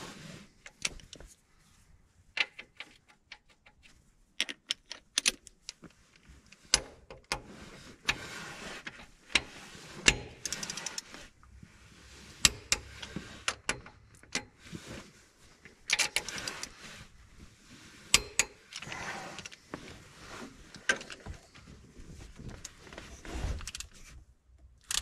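Metal tools clink and knock against metal parts.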